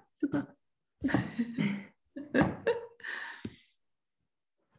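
A second woman laughs over an online call.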